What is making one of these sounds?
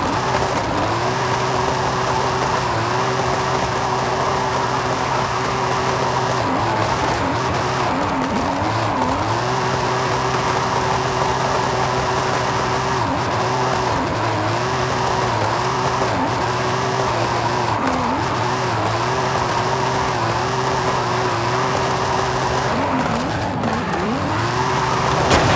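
Tyres screech and squeal as a car drifts.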